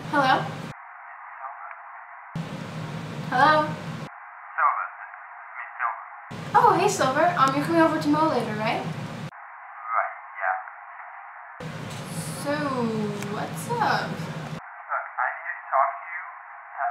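A voice answers faintly through a phone.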